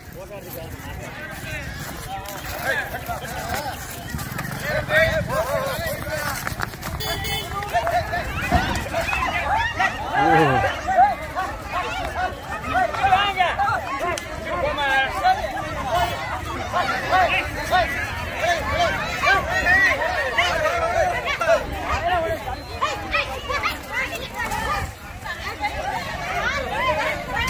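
A crowd of men and women talks and shouts excitedly nearby, outdoors.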